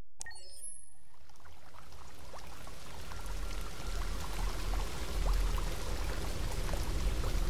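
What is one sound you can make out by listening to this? Rain falls steadily, pattering on a wet surface.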